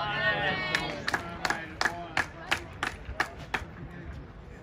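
Spectators clap their hands several times.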